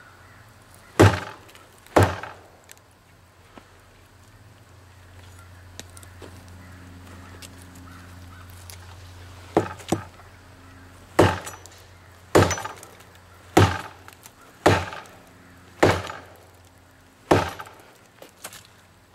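A blade chops into a tree trunk with sharp, heavy thuds.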